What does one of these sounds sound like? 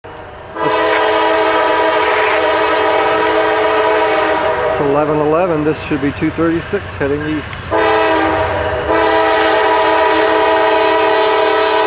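A diesel locomotive rumbles as it approaches.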